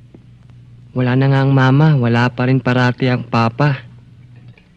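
A boy answers in a young voice.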